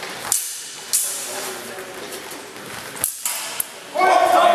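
Steel swords clash in an echoing hall.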